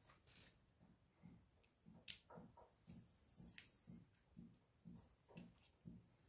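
A small screwdriver clicks and scrapes against a battery pack.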